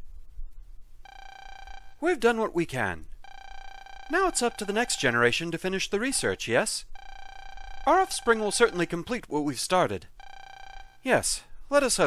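Electronic text blips beep in short steady bursts.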